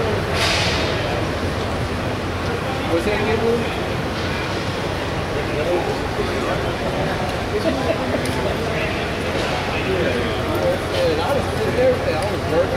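A man talks with another man nearby.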